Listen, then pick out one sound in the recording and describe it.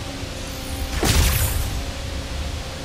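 A bowstring snaps as an arrow flies off.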